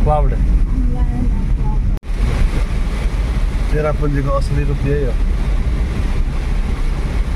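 Heavy rain drums on a car's windscreen.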